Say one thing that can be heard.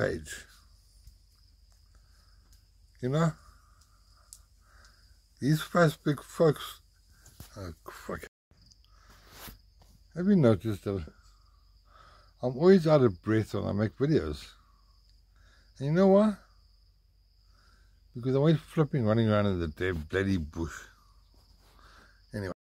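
An elderly man speaks close up in a slow, hoarse voice, with pauses.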